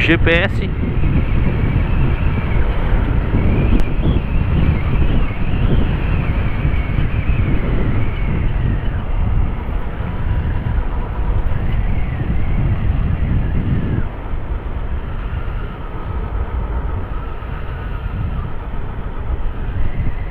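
A single-cylinder 250 cc motorcycle engine hums while cruising.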